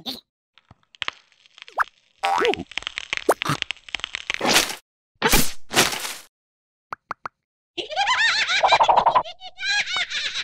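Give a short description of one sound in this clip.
A cartoon creature babbles and squeals in a high, silly voice.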